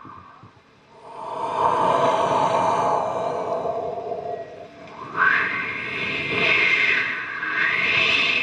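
A young man speaks with animation into a microphone over loudspeakers.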